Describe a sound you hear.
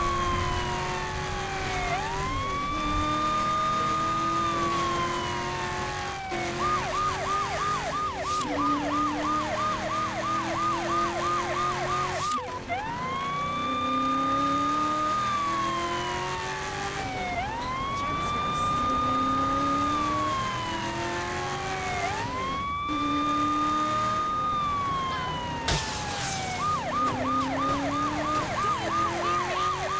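A police siren wails, switching between a rising wail and a rapid yelp.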